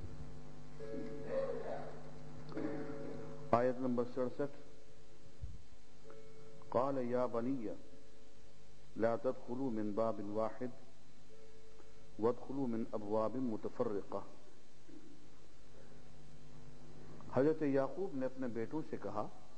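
An elderly man reads aloud slowly in a chanting voice, close by.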